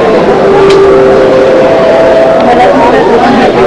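Several women chatter nearby in a busy, noisy crowd.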